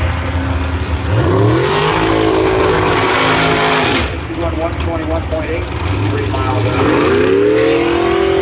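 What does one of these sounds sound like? A race car engine revs up sharply in rising bursts.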